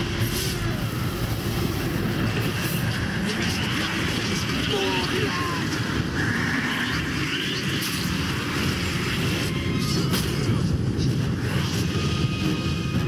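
Blades clash and strike in quick blows.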